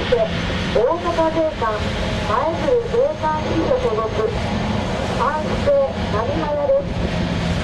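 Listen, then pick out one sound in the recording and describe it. A boat's motor hums as it speeds past.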